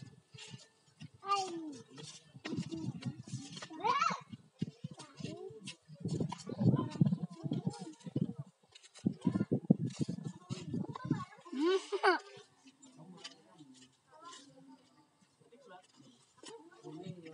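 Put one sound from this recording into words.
Young children talk and shout excitedly close by.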